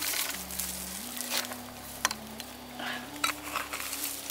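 A small pick chops into dry, stony soil.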